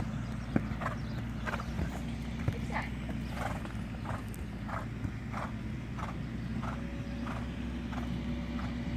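A horse canters on soft sand with steady, rhythmic hoofbeats.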